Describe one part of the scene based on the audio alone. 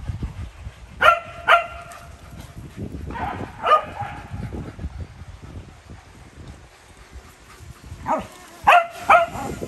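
A small dog yaps in short, high bursts nearby.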